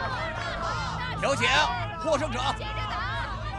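A man announces loudly.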